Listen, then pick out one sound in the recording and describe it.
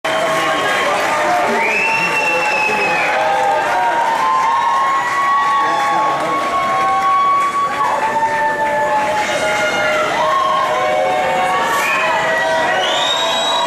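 A man sings into a microphone over the band.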